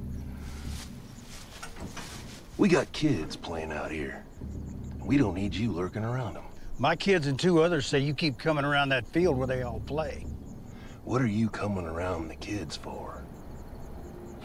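A bearded man speaks in a low, gruff voice close by.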